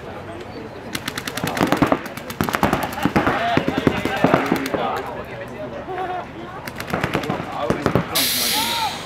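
Paintball markers fire rapid bursts of shots outdoors.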